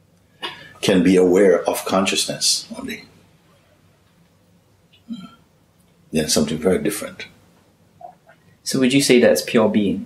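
A middle-aged man speaks calmly and thoughtfully close to a microphone, pausing between phrases.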